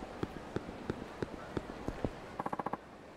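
Footsteps slap quickly on hard pavement.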